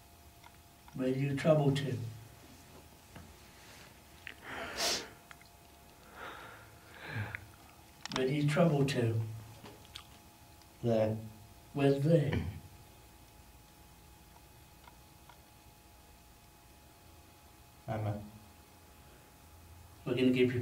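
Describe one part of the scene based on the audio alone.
A man speaks in a low voice close by, in short bursts with pauses.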